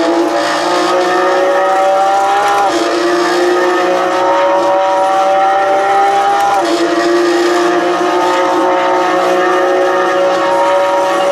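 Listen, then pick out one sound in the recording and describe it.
A simulated Porsche GT3 flat-six engine accelerates through the gears over loudspeakers.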